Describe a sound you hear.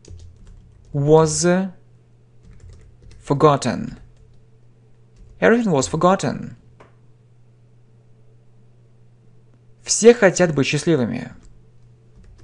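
A man speaks calmly and clearly into a nearby microphone, in short separate phrases.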